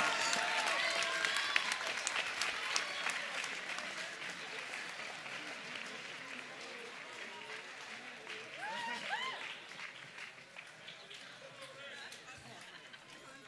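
A crowd applauds outdoors and slowly fades.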